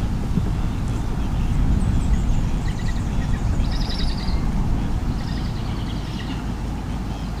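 A young bird of prey calls with high, thin cries.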